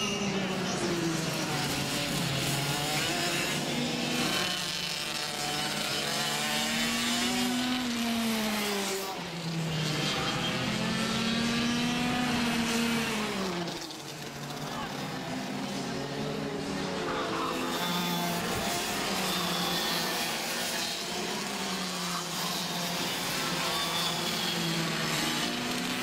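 Kart engines buzz loudly, rising and falling in pitch as they speed past.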